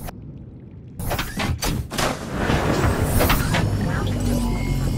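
Water splashes and bubbles as a small submarine drops into the sea.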